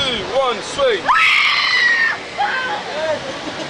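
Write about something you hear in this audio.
A young woman screams loudly.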